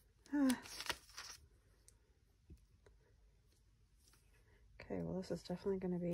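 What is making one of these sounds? A glue bottle's tip rubs against paper pages.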